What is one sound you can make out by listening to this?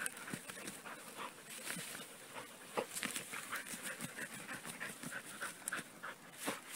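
A dog digs and rustles in dry grass and leaves close by.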